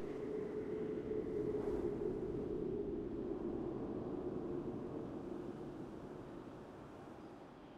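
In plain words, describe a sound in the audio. Wind rushes steadily and slowly fades.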